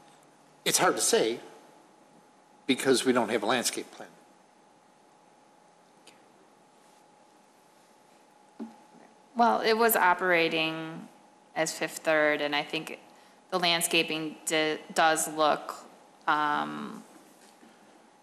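A man speaks into a microphone in a large room, in short bursts with pauses.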